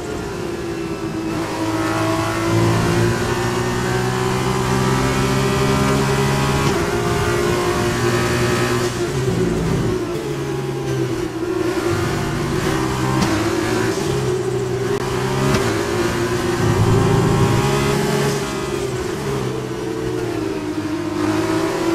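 A racing car engine screams at high revs, shifting gears and dropping in pitch under braking.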